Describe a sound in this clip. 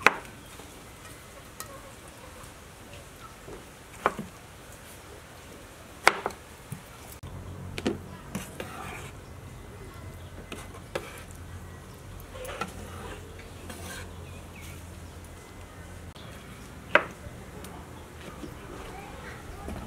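A knife chops down hard on a wooden board.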